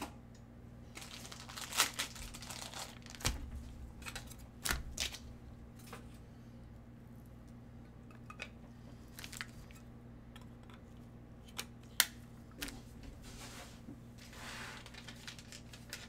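Card packs rustle and crinkle as they are handled.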